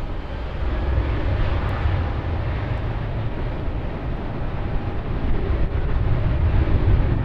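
A jet airliner's engines roar steadily as it taxis nearby.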